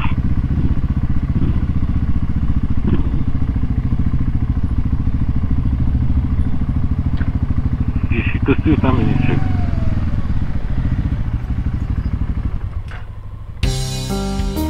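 A motorcycle engine rumbles steadily as it rolls slowly over cobblestones.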